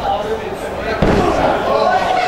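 A body thuds heavily onto a ring mat.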